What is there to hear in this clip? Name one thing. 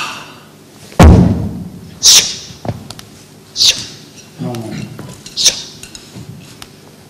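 A man thumps on a wooden floor.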